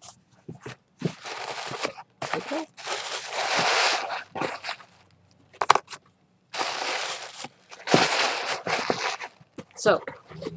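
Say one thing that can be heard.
Plastic wrapping rustles and crinkles close by.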